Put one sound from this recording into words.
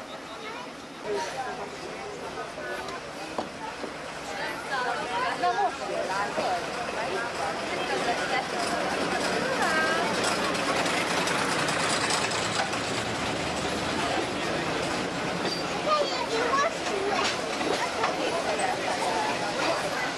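A small diesel train approaches and rumbles past on its rails, growing louder.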